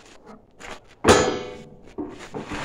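A sharp metallic clank rings out briefly.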